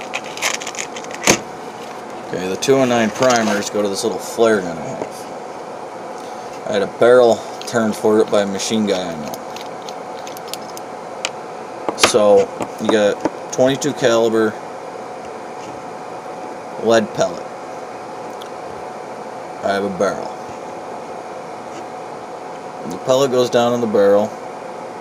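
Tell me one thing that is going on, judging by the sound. Small metal parts click and scrape together.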